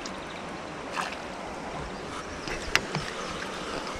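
A fishing rod knocks and clatters against a wooden deck.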